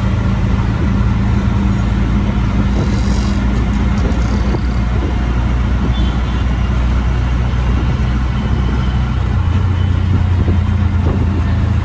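An auto-rickshaw engine putters steadily at close range.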